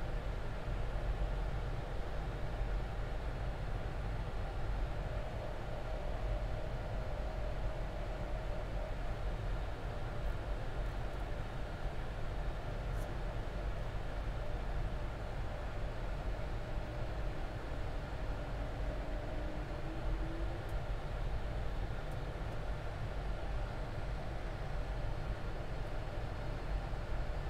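Air rushes past the aircraft with a constant low rumble.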